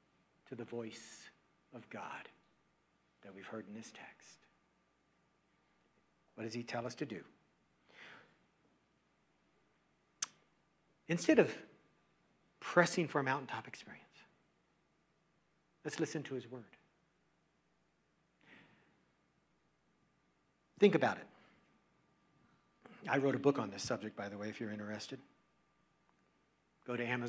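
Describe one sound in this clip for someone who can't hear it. An older man speaks calmly through a microphone in short phrases with pauses.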